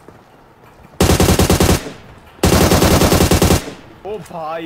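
A rifle fires in two rapid automatic bursts.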